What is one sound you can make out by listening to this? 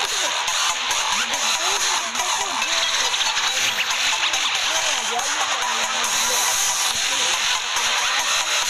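Upbeat dance music plays steadily.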